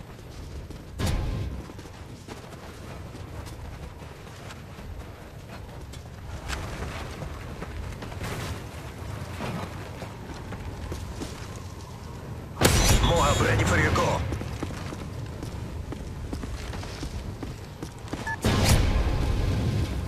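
Gunshots bang sharply in short bursts.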